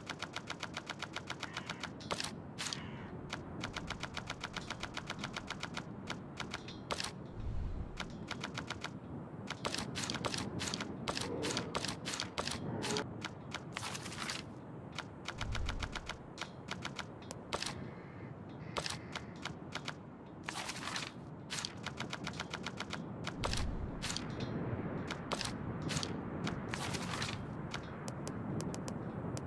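Game menu clicks tick quickly as a list scrolls.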